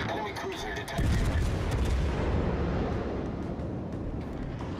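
A shell splashes into the water with a deep, rumbling boom.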